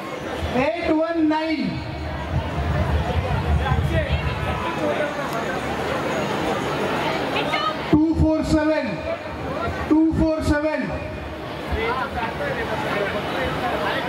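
A man speaks with animation into a microphone over loudspeakers.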